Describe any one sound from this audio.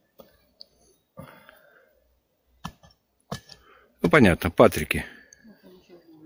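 Hands scrape and dig through loose soil.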